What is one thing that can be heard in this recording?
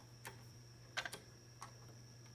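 A button clicks under a finger.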